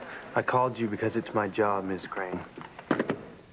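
A young man speaks calmly into a phone.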